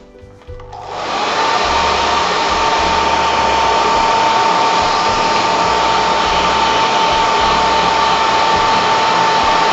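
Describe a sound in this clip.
A heat gun blows with a loud, steady whirring roar and a high whine.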